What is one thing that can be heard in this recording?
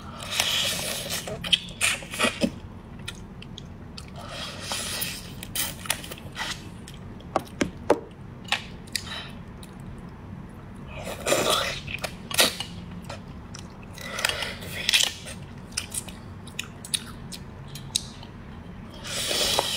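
A woman slurps and chews wetly close to a microphone.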